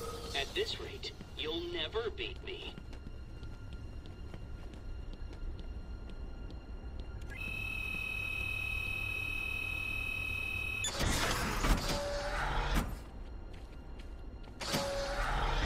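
Footsteps tap on a hard floor.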